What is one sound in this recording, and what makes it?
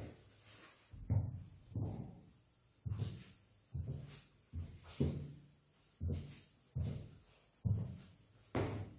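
Boots clack in steady footsteps on a hard floor in an echoing hall.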